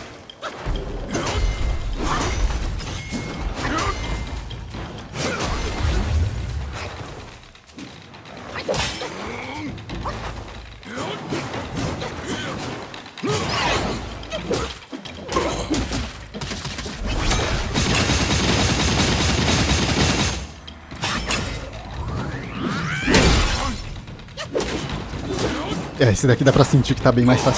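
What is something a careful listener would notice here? Flames whoosh and roar in bursts.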